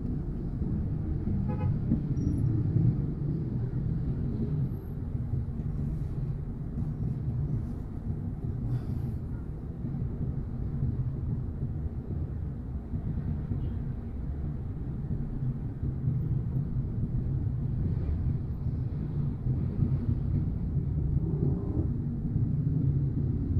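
A car engine idles steadily with a low rumble, heard from inside the car.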